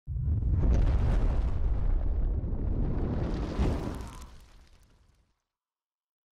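A deep fiery explosion roars and rumbles, then fades away.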